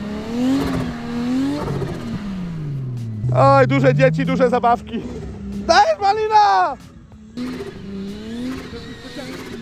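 A car engine revs and whines as the car drifts on snow.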